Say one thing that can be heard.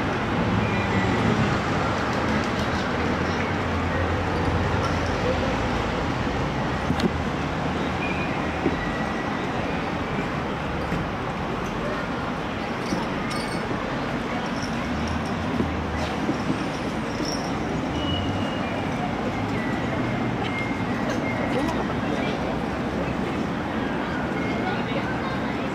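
Traffic hums in the distance.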